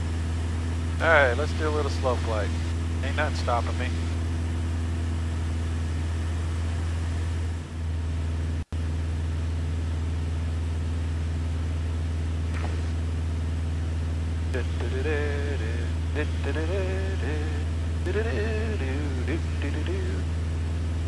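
A middle-aged man speaks calmly over a headset microphone.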